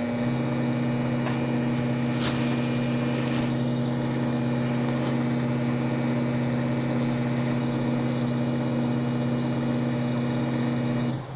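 A milling machine's motor hums steadily.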